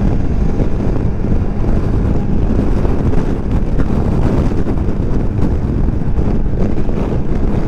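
Wind rushes loudly and buffets past.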